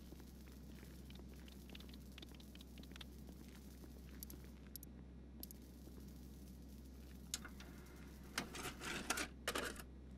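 Keys tap quickly on a computer keyboard.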